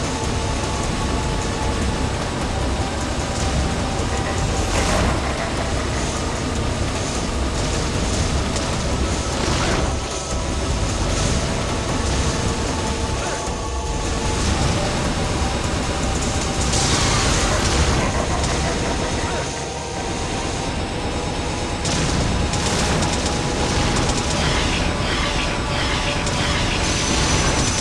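Sword slashes and energy blasts hit a winged foe again and again.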